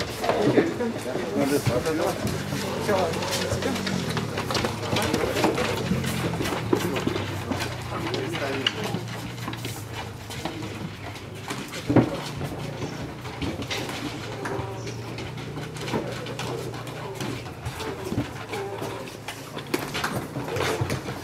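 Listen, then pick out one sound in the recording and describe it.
Footsteps tread on hard pavement and steps.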